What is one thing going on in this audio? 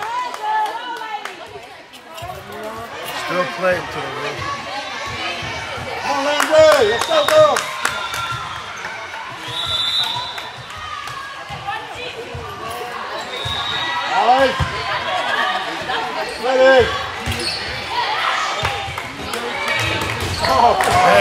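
Players' shoes squeak sharply on the court floor.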